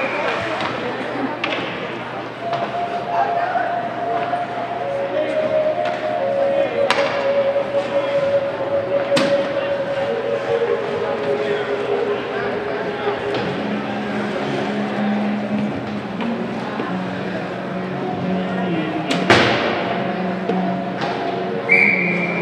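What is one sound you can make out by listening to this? Hockey skates glide and scrape on ice.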